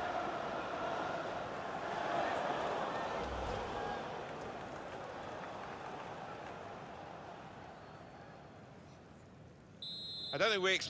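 A stadium crowd cheers loudly, then slowly fades.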